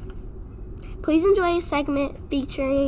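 A young girl speaks into a microphone, reading out calmly.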